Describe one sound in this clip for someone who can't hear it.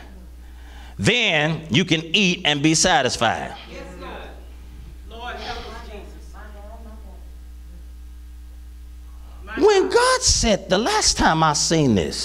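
A man preaches with animation through a microphone in an echoing hall.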